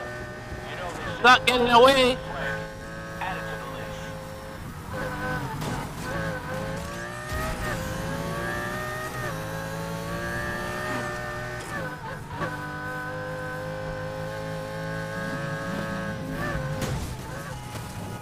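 A racing car engine roars and revs, changing pitch as it shifts gears.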